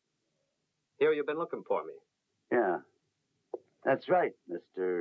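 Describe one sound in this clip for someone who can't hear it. An older man speaks calmly and gravely nearby.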